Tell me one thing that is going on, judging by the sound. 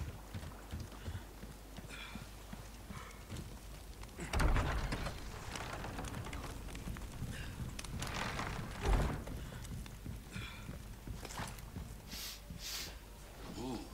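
Footsteps walk steadily on a hard floor.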